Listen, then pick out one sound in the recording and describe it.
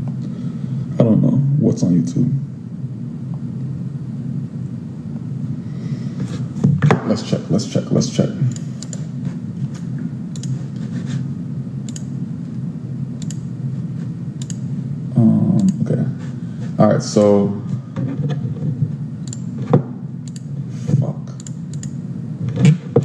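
A young man speaks casually and close up, in short bursts with pauses.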